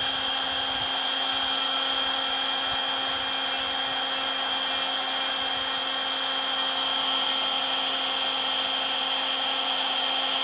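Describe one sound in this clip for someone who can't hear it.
A heat gun blows hot air with a steady whirring hiss.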